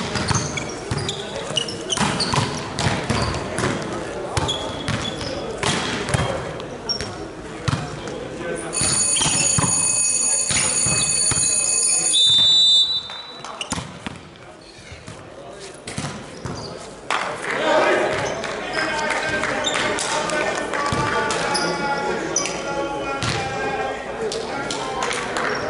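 A volleyball thumps as players hit it, echoing in a large hall.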